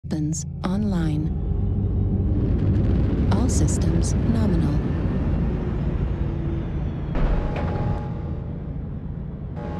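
A heavy machine rumbles low and steadily.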